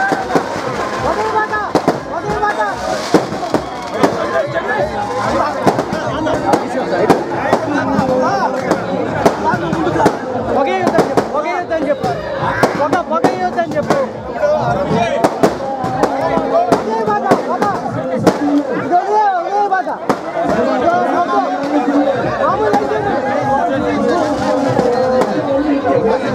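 A crowd of men chatter and cheer loudly close by.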